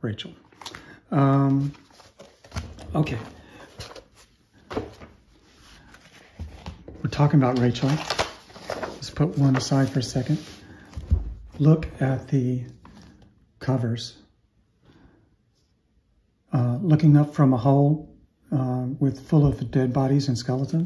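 Stiff paper pages rustle and slide as they are handled.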